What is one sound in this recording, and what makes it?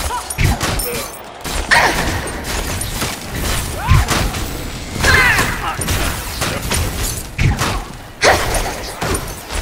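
Game spells whoosh and blast in quick bursts.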